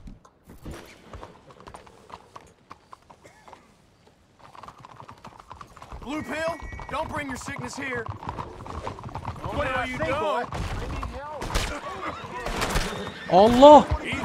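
Horse hooves clatter on cobblestones.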